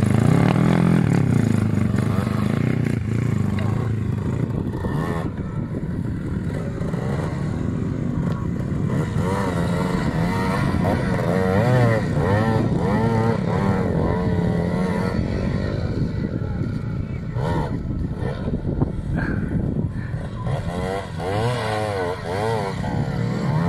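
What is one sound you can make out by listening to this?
A dirt bike engine revs hard, rising and falling in pitch.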